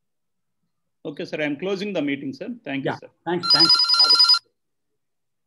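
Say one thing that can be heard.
A middle-aged man speaks calmly through an online call.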